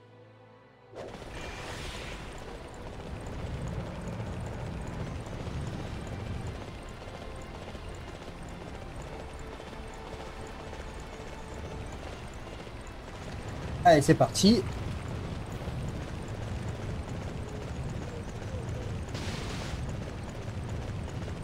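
A horse's hooves gallop steadily over soft ground.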